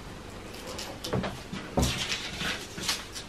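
Paper rustles and crackles as it is handled.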